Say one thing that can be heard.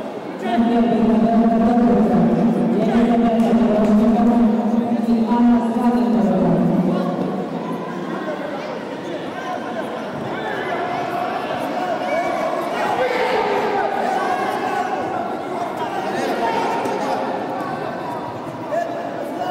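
Men and women chatter at a distance in a large echoing hall.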